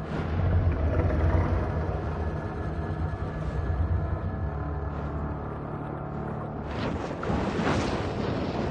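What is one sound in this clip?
A deep, muffled underwater rumble hums steadily.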